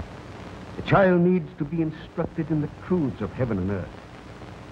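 A second elderly man speaks slowly and sternly.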